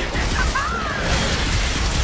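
A sword slashes sharply through the air.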